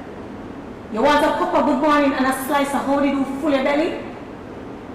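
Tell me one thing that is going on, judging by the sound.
A second woman answers in a hall.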